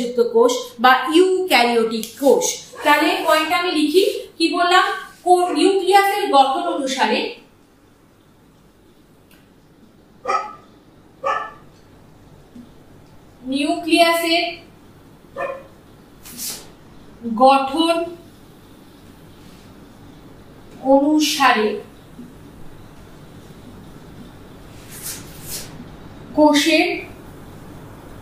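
A woman speaks calmly and clearly, close by, with pauses.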